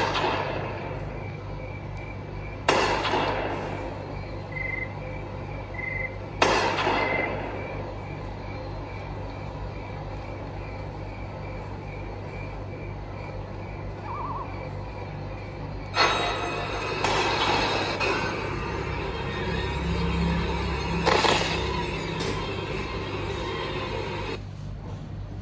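Game sound effects and music play from a tablet speaker.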